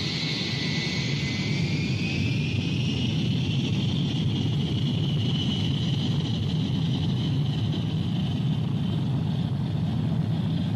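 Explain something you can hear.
A jet engine roars steadily with a high whine as an airliner takes off and climbs.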